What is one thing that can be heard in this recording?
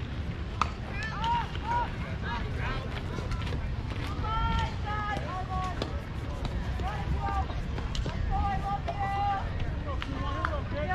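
Young girls chant and cheer loudly across an open field.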